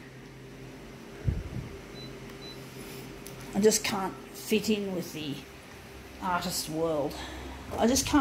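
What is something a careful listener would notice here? A copier hums steadily.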